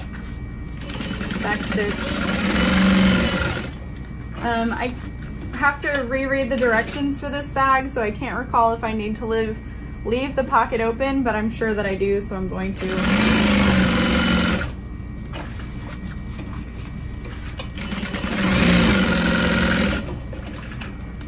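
A sewing machine motor whirs and stitches rapidly in short bursts.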